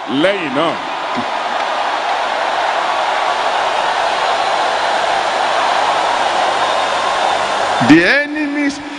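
A large crowd prays and cries out loudly together.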